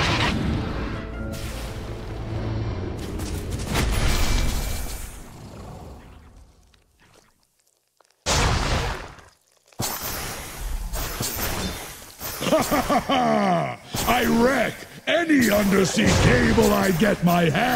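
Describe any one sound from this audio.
Spell effects crackle and whoosh as game characters fight.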